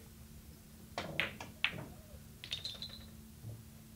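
A cue strikes a billiard ball and the balls click sharply against each other.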